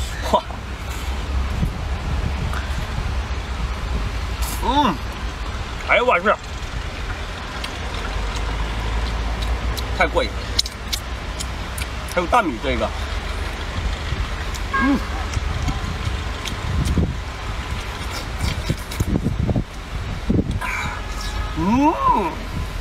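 A young man slurps and chews food noisily.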